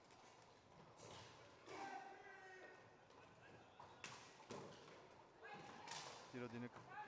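Sticks clack against a ball.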